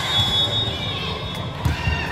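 A volleyball thuds as it is hit.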